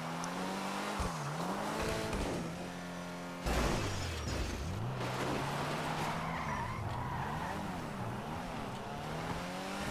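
A car engine revs up and down throughout.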